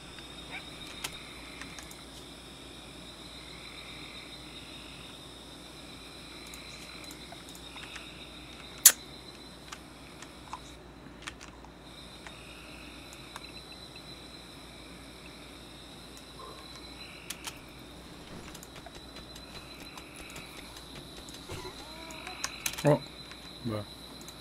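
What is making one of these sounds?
Short game interface clicks sound now and then.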